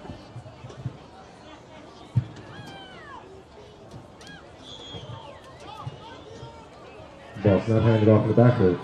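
Spectators cheer and call out outdoors.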